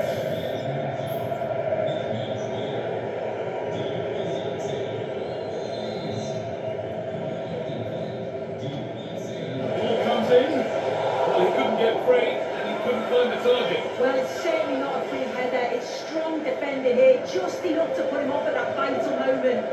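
A stadium crowd roars steadily through a television speaker.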